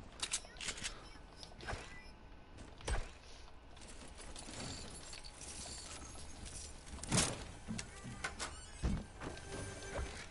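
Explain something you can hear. Footsteps patter on wooden floors.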